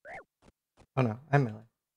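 A young man speaks briefly and loudly into a close microphone.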